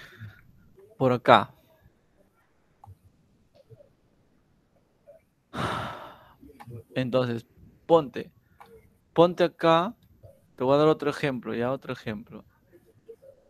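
A man speaks calmly through an online call microphone, in short bursts with pauses.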